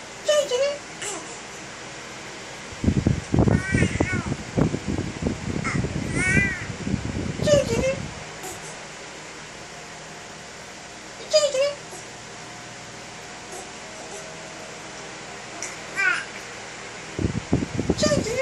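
A baby squeals and babbles up close.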